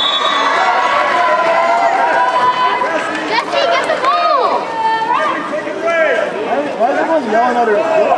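A crowd of spectators shouts and cheers loudly.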